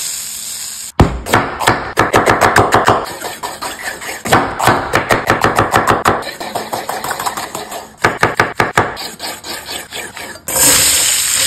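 A knife chops quickly through crisp vegetables on a wooden board.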